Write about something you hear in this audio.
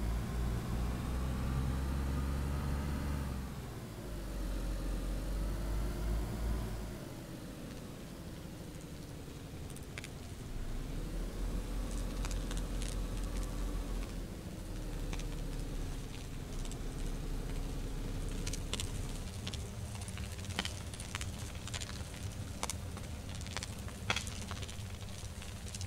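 A car engine hums and revs unevenly as the car drives over rough ground.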